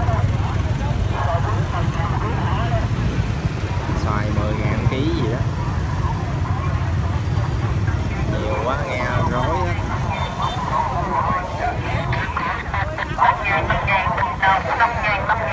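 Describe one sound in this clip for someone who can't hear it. Men and women chatter in a busy crowd.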